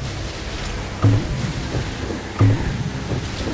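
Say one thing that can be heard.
Game explosions thump loudly.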